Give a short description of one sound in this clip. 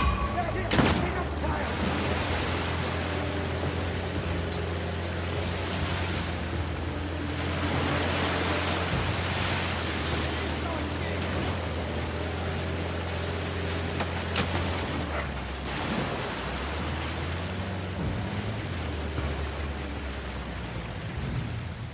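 Water splashes and sprays under the tyres.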